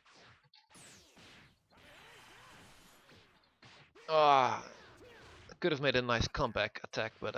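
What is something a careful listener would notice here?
Punches and kicks land with sharp smacks.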